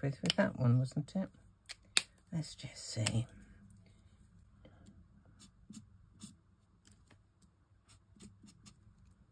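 An alcohol marker rubs across card.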